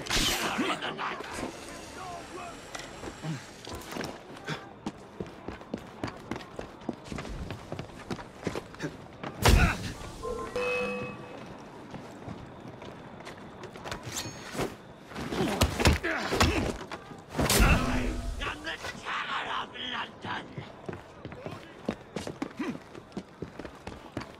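Footsteps patter quickly across rooftops.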